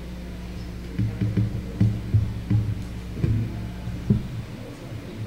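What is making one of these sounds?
An acoustic guitar is softly plucked.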